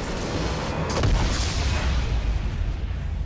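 A large structure explodes with a deep boom.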